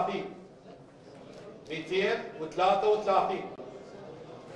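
A man announces loudly through a microphone.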